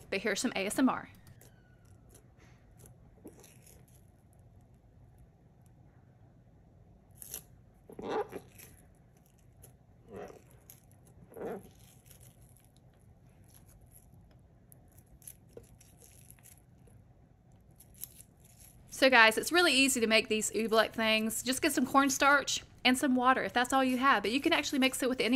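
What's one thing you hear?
Soft, wet dough squishes and squelches between fingers.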